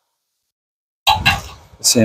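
An impact wrench whirs on a bolt.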